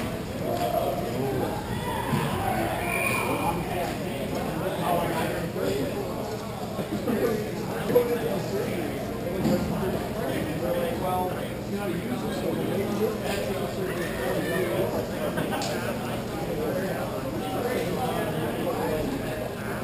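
Skates and sticks clatter across a large echoing rink.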